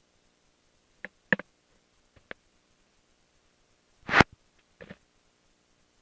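A headset clicks and knocks as it is handled.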